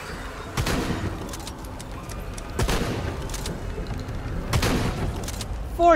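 A rifle fires single loud shots with a booming echo.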